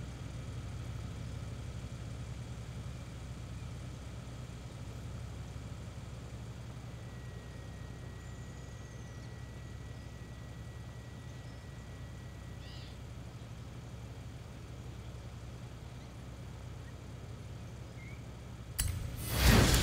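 A car engine idles with a low hum.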